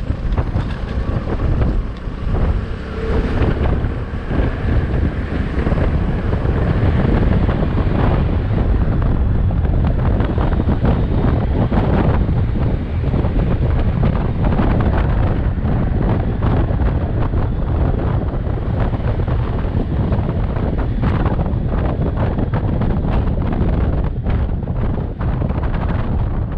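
A motorcycle engine hums steadily as it rides along a road.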